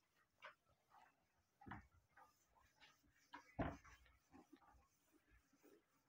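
A cloth duster rubs across a whiteboard.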